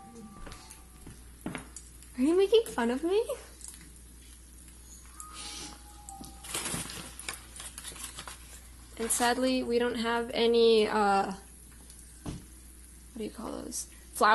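An egg sizzles in a frying pan.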